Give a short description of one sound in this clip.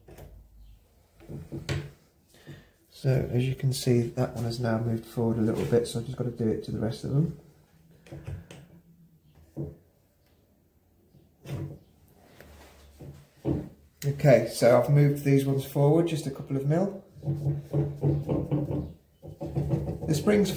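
Wooden piano parts tap and click under a man's hands.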